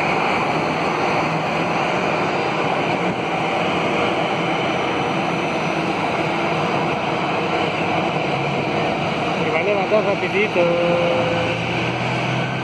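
A twin-engine jet airliner taxis past with a whining roar.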